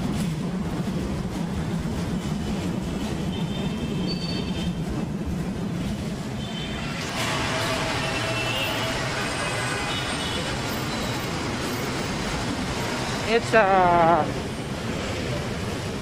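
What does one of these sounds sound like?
City traffic hums steadily below, outdoors.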